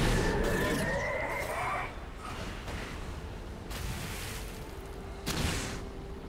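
A fiery spell roars and crackles in bursts.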